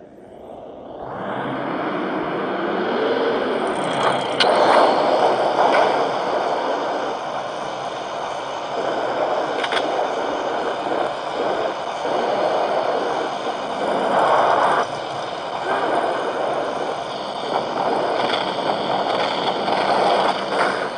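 A tank engine rumbles steadily from a game.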